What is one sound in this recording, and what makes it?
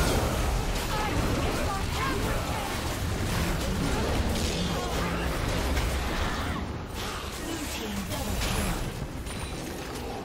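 Magic blasts whoosh and crackle in a fast battle.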